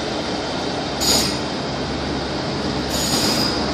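Train wheels clatter over rail joints.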